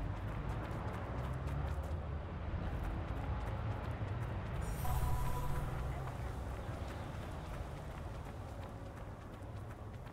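Footsteps run over gravel and grass.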